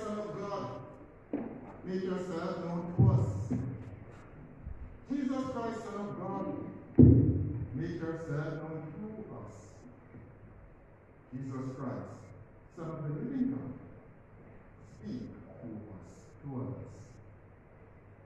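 A man speaks slowly and solemnly at a distance, in a room with a noticeable echo.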